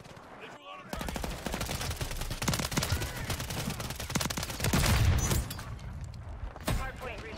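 Gunfire crackles in rapid bursts.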